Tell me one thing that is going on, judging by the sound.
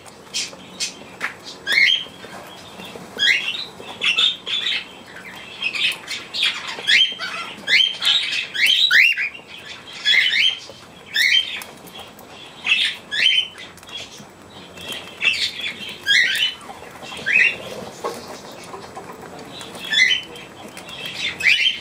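A cockatiel screeches loudly close by, again and again.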